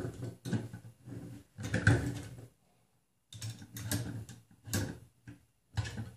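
A wrench clicks against a metal nut as it is tightened.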